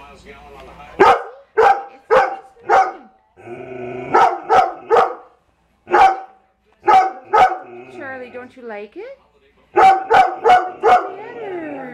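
A large dog barks loudly and repeatedly, close by.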